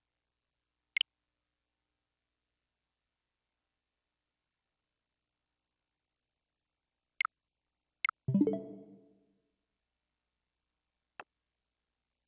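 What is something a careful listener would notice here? Short electronic menu clicks sound now and then.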